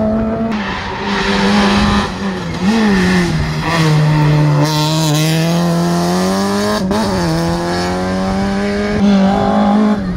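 A second rally car revs hard, slowing and accelerating through a hairpin.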